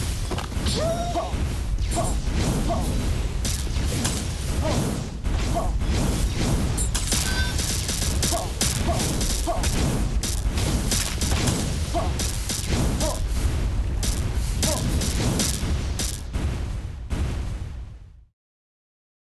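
Rapid game explosions boom and crackle without pause.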